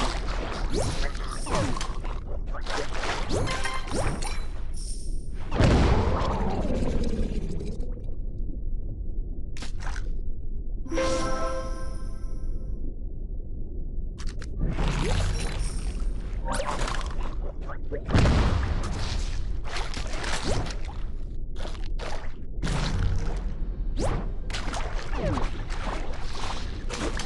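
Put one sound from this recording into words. A shark chomps and crunches prey.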